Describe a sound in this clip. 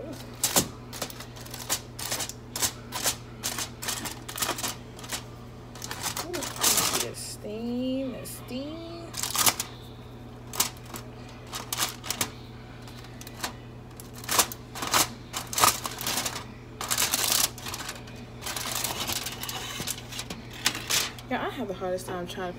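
Foil crinkles and rustles as it is handled.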